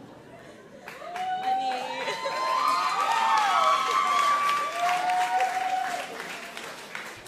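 A choir of young voices sings together in a large hall.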